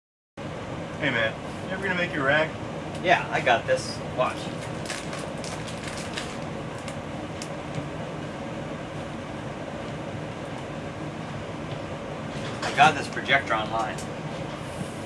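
Another man talks calmly nearby.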